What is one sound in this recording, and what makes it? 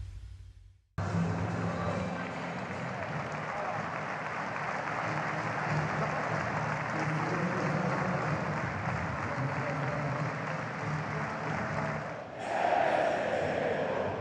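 A stadium crowd murmurs and cheers outdoors.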